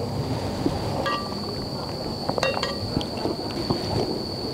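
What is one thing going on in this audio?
A spoon scrapes and clinks against a bowl.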